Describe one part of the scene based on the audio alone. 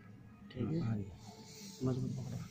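A pen scratches quickly across paper.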